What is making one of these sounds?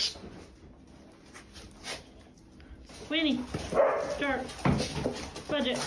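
Dogs' claws tap and shuffle on a hard floor.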